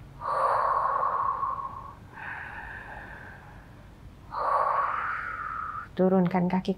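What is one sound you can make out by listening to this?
A woman breathes in and out slowly and deeply.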